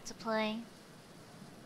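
A young woman squeals briefly into a microphone.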